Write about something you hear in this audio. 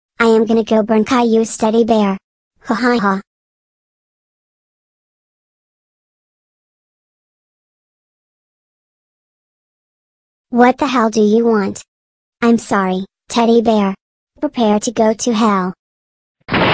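A man speaks in a flat, computer-made voice.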